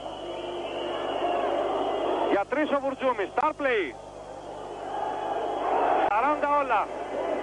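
A large crowd roars and cheers in an echoing arena.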